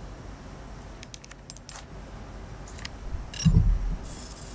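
Electronic keypad buttons beep and click.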